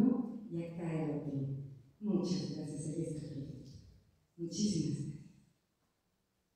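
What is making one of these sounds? A man sings through loudspeakers in a large hall.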